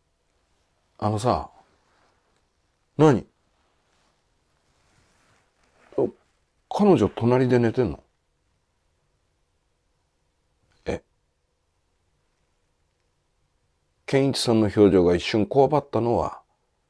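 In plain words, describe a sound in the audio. A man speaks close by in short, expressive bursts with long silences between them.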